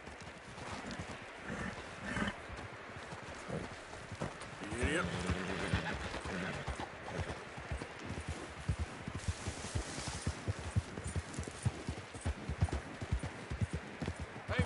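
A horse's hooves thud steadily on the ground.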